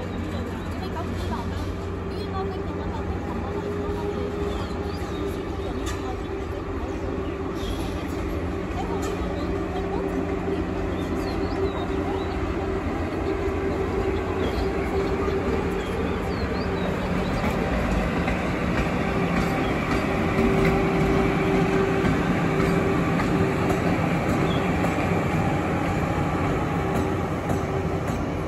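Steel wheels rumble and click over rail joints.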